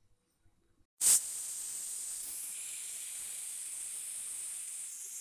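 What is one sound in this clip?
A pressure cooker's valve bursts into a loud, steady hiss of steam.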